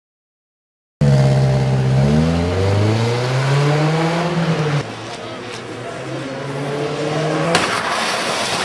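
A car engine revs hard and rises in pitch as the car speeds up.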